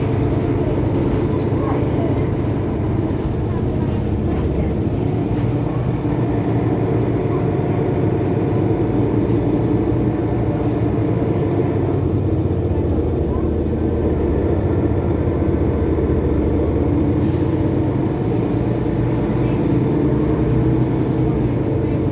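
A bus engine idles with a steady low rumble close by.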